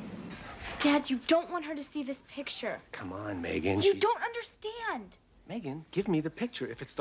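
A young girl exclaims in surprise.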